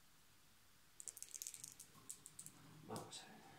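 Small plastic cubes rattle and click onto a table.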